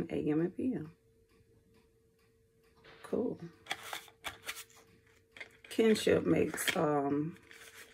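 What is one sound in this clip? A woman speaks calmly and close by, in short phrases.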